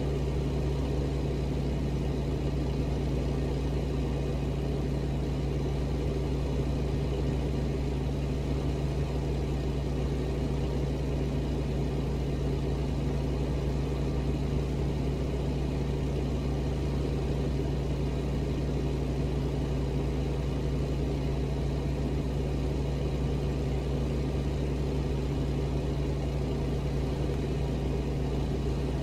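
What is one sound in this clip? A truck's diesel engine hums steadily from inside the cab.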